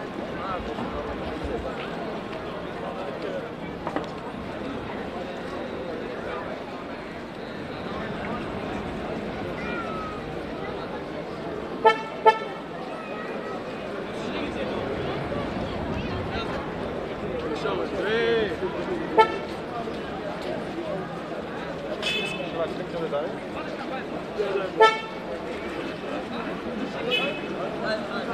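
A large crowd of men talk and murmur outdoors.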